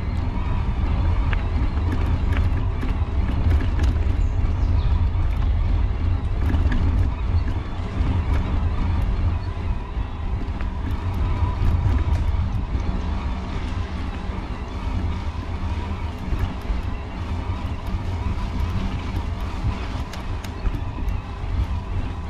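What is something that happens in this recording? Bicycle tyres roll and rattle over a bumpy dirt trail.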